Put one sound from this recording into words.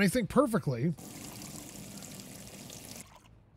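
Water runs from a tap into a metal pot.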